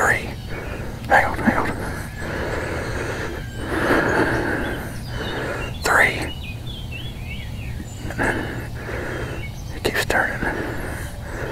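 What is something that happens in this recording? Wild turkeys gobble loudly outdoors in bursts.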